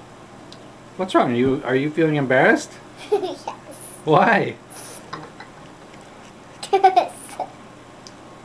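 A young girl talks brightly and giggles close by.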